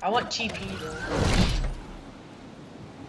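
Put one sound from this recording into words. A glider snaps open with a whoosh.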